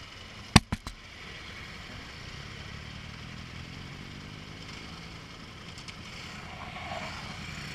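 Other motorcycles ride past nearby.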